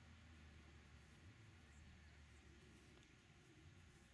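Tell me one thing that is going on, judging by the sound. A putter taps a golf ball on the grass.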